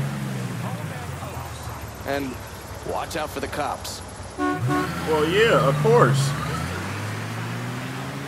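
A van engine rumbles and pulls away.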